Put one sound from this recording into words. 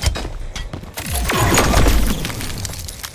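An energy blast whooshes and crackles.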